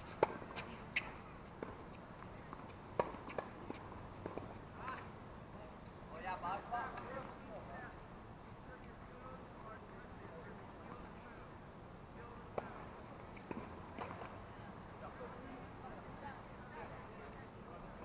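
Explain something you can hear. Tennis balls are struck with rackets in the distance, with sharp pops now and then.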